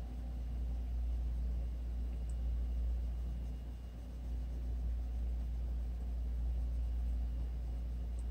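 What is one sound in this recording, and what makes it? A pencil softly scratches on paper.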